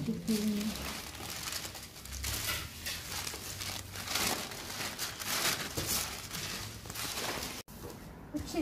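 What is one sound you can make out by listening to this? Large sheets of paper rustle and crinkle as they are handled.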